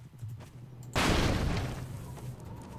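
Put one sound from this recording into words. A wooden crate drops to the ground with a thud.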